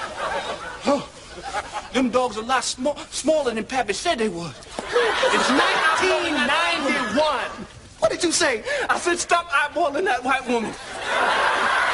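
A man shouts excitedly nearby.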